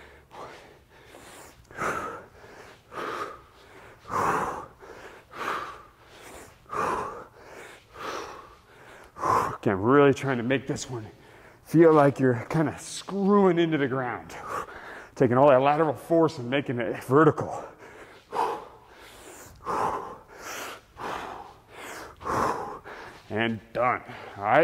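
A man exhales sharply.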